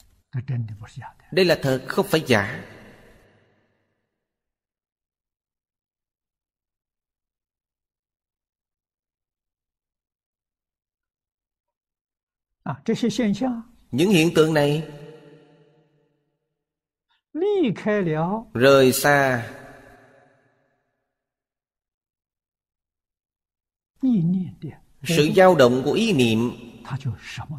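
An elderly man speaks calmly and slowly into a microphone, in short phrases with long pauses.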